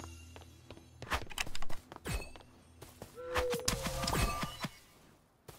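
A sword swishes and strikes with sharp hits.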